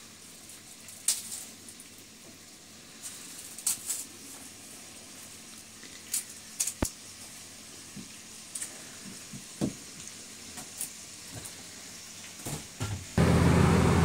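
A knife chops on a cutting board.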